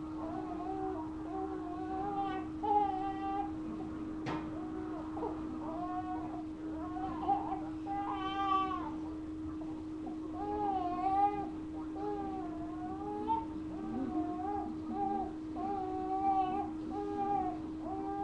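A baby coos and babbles close by.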